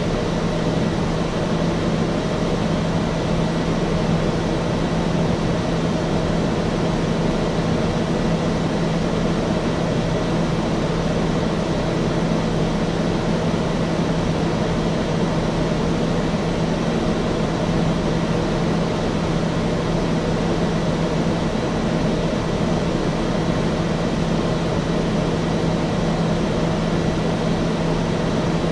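A propeller engine drones steadily from inside a small aircraft.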